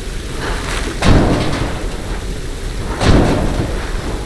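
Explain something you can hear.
Heavy bundles thud and swing on ropes.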